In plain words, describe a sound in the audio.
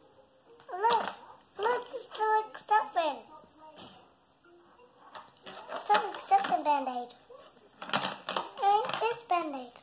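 Plastic toy parts clatter and click.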